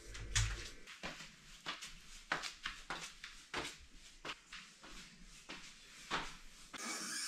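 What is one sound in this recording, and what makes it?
Footsteps climb hard stairs at a steady pace.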